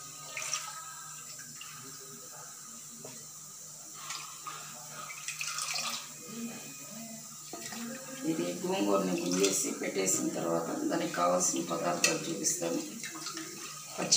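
Wet leaves squelch as a hand squeezes them.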